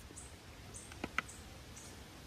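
A knife taps on a plate.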